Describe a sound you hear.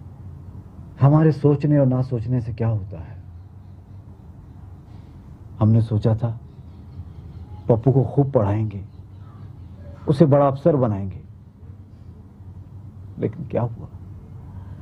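A middle-aged man speaks softly and pleadingly up close, in short bursts with pauses.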